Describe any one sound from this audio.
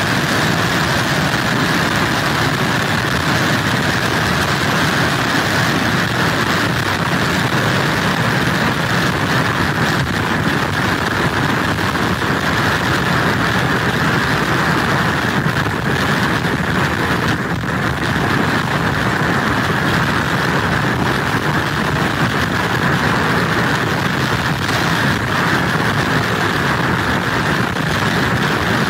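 Heavy surf crashes and rumbles.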